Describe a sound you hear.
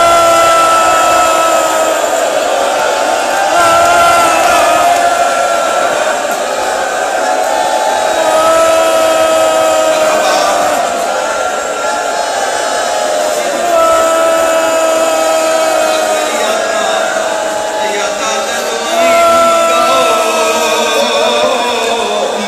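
A crowd of men chants along loudly.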